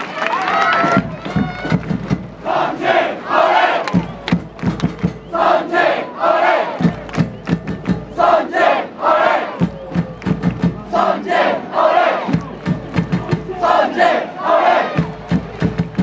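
Fans nearby chant in rhythmic unison.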